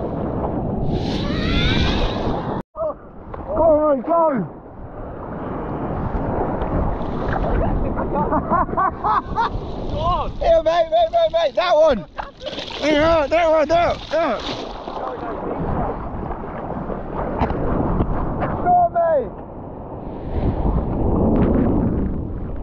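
A wave breaks and rushes nearby.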